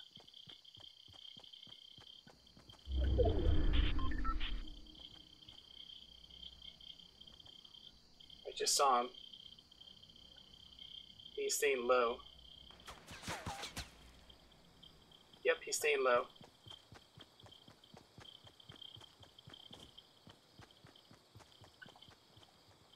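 Footsteps patter quickly and steadily on the ground.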